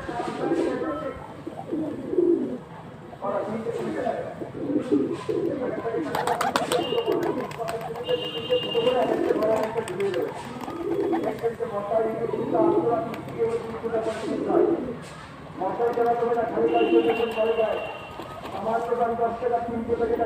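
Pigeons coo in low, rolling calls close by.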